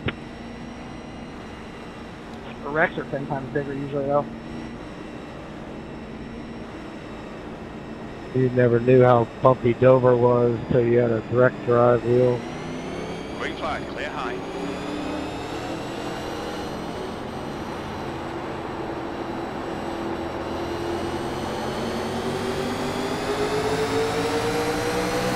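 A race car engine drones steadily, then revs higher as the car speeds up.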